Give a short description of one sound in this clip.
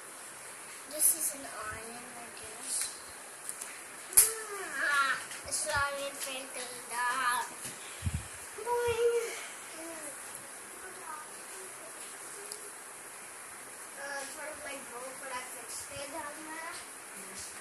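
A young child talks close by.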